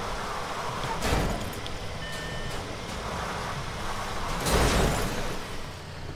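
A heavy truck bangs and crashes over obstacles.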